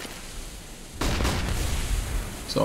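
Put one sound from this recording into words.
A flashbang bursts with a sudden loud bang.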